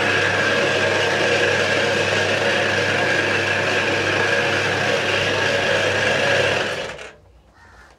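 A noodle machine whirs and rattles steadily, then stops.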